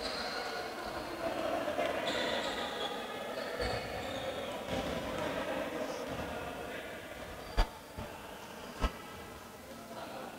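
Sneakers squeak on a wooden court in an echoing hall.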